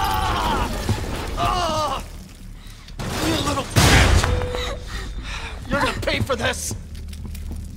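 An elderly man groans in pain.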